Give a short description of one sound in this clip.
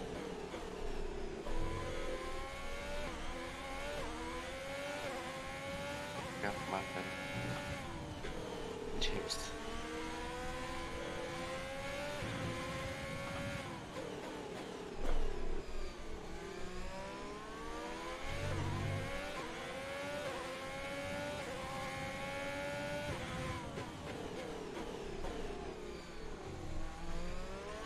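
A racing car engine revs high, rising and dropping in pitch with each gear change.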